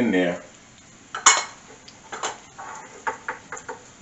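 A small glass bowl clinks on a wooden board.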